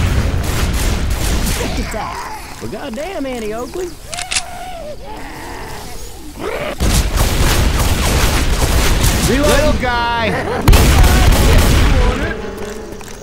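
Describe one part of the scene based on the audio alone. A shotgun fires in rapid bursts.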